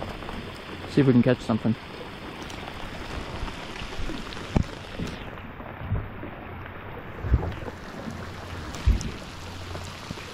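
Wind gusts rumble against the microphone.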